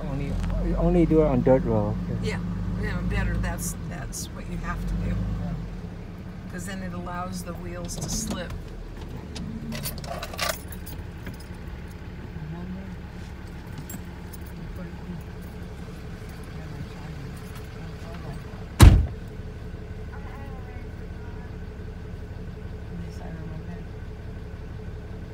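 A vehicle engine hums steadily, heard from inside the cab.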